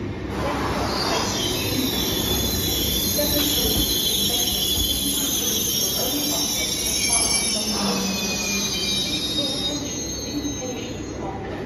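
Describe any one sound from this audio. Train brakes squeal with high, wavering tones.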